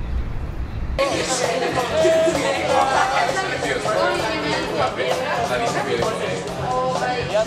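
A group of young men and women chat with animation close by.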